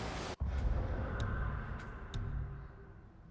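Short menu clicks tick a few times.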